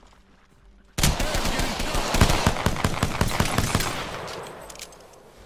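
Gunshots fire in rapid bursts, close by.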